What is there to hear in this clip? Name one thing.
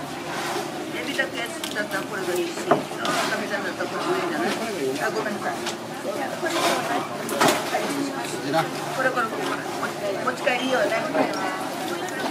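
Hands handle a wet fish, squelching and slapping softly.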